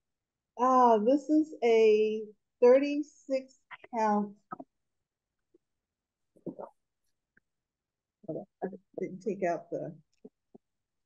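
An older woman talks calmly over an online call.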